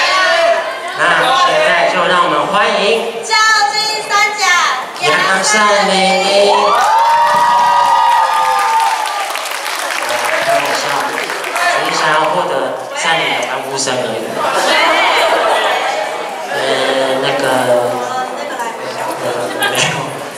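A young woman speaks brightly through a microphone.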